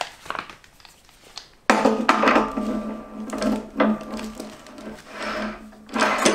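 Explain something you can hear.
A heavy metal part clinks and scrapes as it is fitted onto a machine's shaft.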